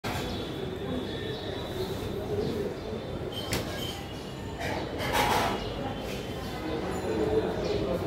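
Cloth rustles and flaps as laundry is hung up.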